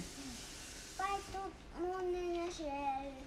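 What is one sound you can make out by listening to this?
Another young girl speaks up close by.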